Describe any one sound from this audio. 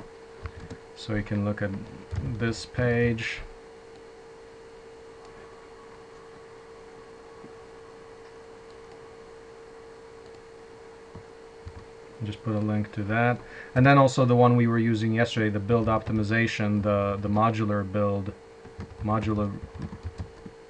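A man talks through an online call.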